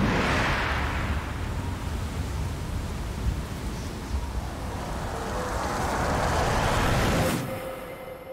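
Water surges and splashes against rock.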